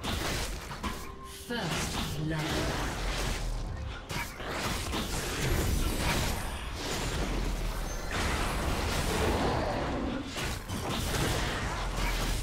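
Magic blasts whoosh and crackle in a fast game fight.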